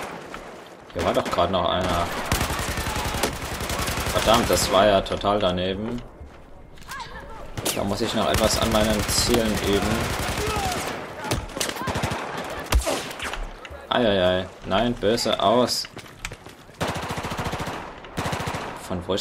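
Rapid bursts of automatic rifle fire crack close by.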